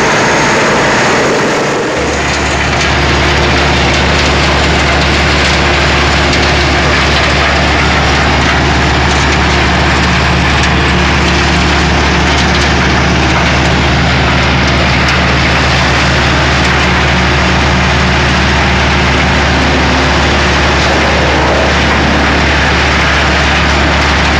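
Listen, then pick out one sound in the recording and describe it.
A large wood grinder roars loudly and steadily close by.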